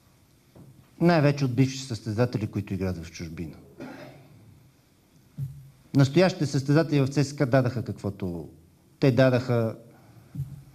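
A middle-aged man speaks firmly into a close microphone.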